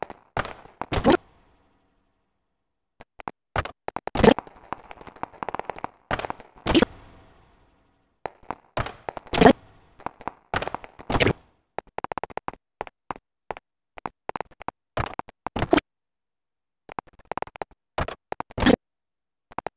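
A heavy door bangs shut with a short echo.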